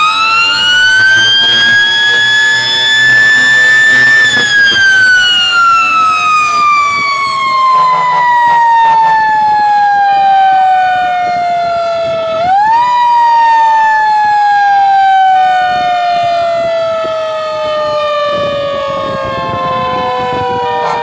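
A heavy truck engine rumbles as it drives along.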